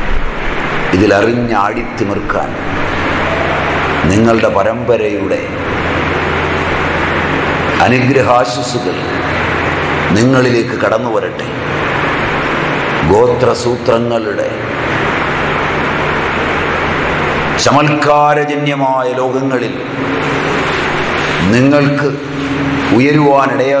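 A middle-aged man speaks calmly close by.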